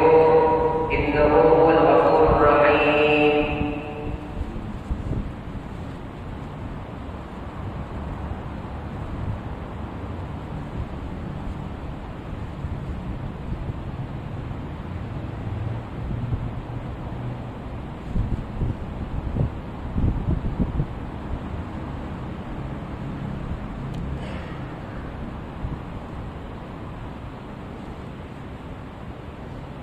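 Electric fans whir steadily.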